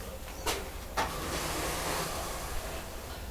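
Liquid glaze pours into a bucket.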